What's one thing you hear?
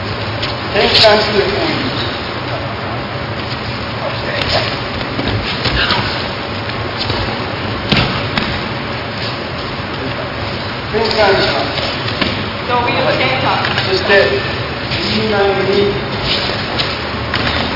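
Bodies thud onto a mat as people are thrown.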